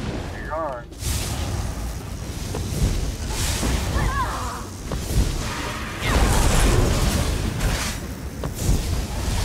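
Electric blasts crackle and zap in rapid bursts.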